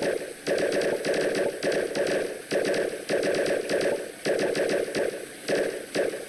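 Short game sound effects blip as a small character jumps again and again.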